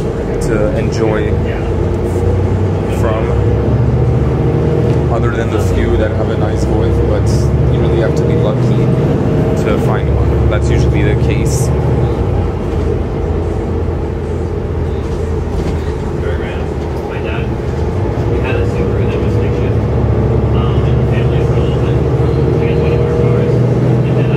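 A bus engine whines, rising and falling in pitch.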